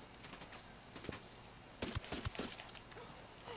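Footsteps rustle softly through grass.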